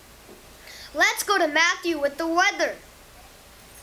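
A young boy speaks clearly and brightly into a microphone.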